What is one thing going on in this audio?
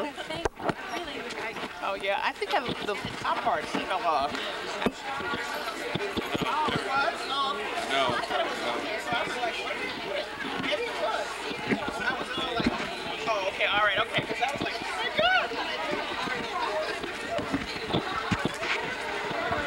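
A woman talks animatedly close by.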